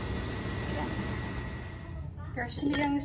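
Liquid bubbles and simmers in a pot.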